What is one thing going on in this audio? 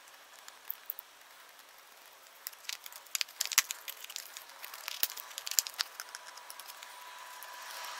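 A small metal tool clicks and scrapes against a metal lid.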